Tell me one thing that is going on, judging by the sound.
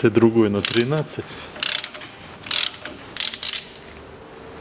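A ratchet wrench clicks against a bolt.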